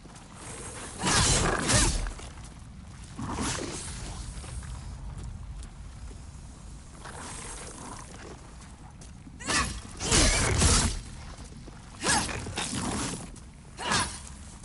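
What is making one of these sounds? Armour clatters and feet scuff on dirt as a figure rolls and dodges.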